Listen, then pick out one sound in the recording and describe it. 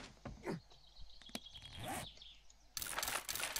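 A short click sounds as a game menu opens.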